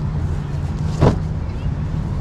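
A bag drops onto grass with a thud.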